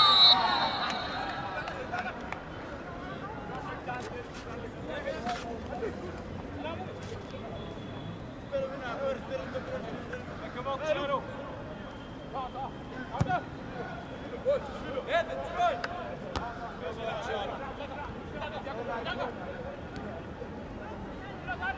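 Footballers shout to each other across a pitch, heard from a distance in an open stadium.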